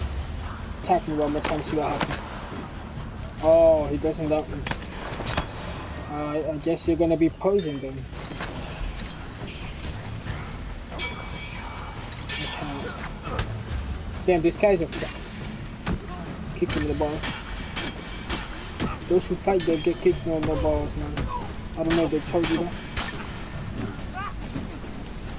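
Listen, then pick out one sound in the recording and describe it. Fists thud in a brawl.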